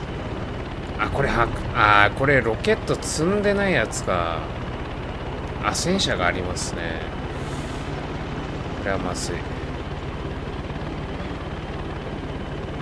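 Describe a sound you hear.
A helicopter engine and rotor drone steadily.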